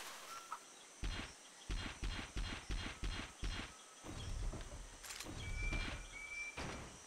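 Punches and kicks land with rapid, heavy thuds in a video game fight.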